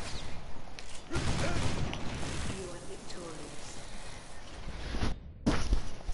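Game sound effects crash and bang.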